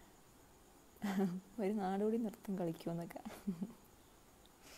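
A young woman speaks warmly and close to a microphone.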